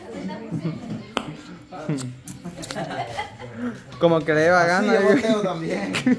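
Several young men laugh and chatter.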